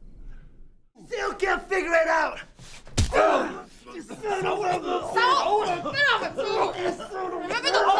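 A man shouts angrily and loudly, close by.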